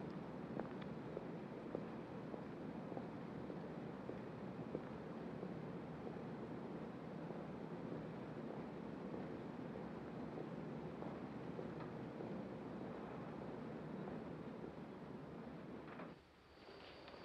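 Footsteps echo slowly down a long hard hallway.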